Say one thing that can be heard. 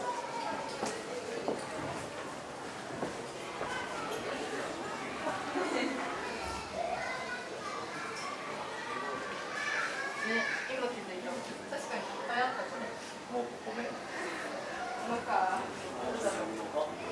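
A young woman talks softly nearby.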